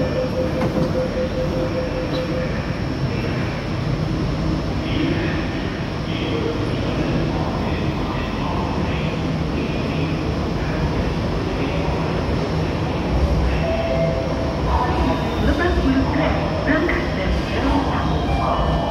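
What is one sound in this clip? People talk indistinctly far off in a large echoing hall.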